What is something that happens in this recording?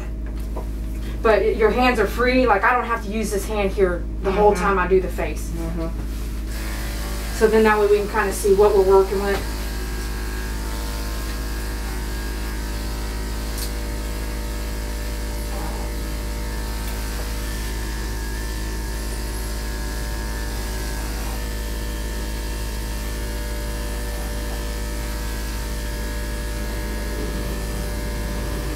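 Electric hair clippers buzz steadily.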